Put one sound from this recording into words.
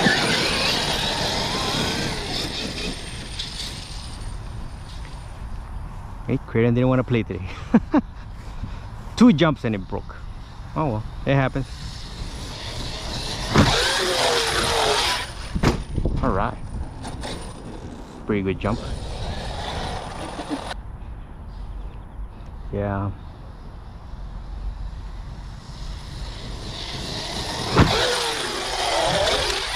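A small electric motor whines loudly as a toy car speeds across grass.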